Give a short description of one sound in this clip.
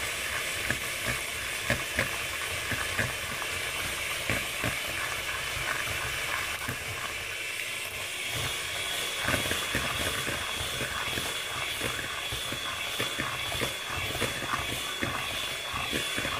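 Mixer beaters clatter against the side of a bowl.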